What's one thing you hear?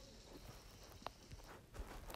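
Water sprays from a shower.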